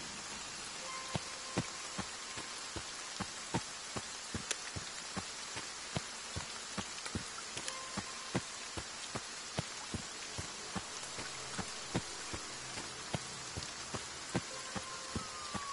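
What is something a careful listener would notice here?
Footsteps crunch steadily over leaves and undergrowth.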